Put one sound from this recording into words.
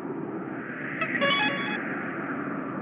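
A bright sparkling chime rings briefly.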